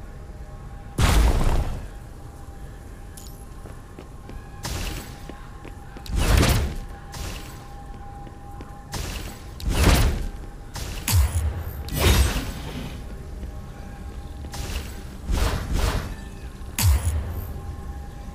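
Magic whooshes burst out in short, rushing sweeps.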